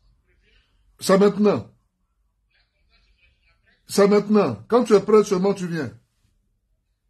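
A man talks animatedly close by.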